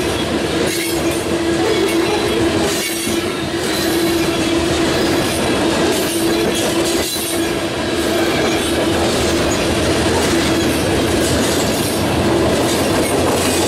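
Steel wheels squeal steadily against the rails.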